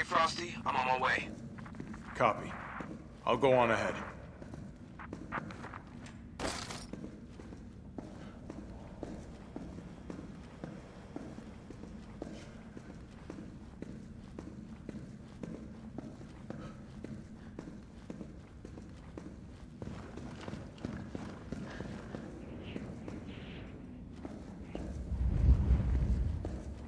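Boots tread steadily on a hard floor.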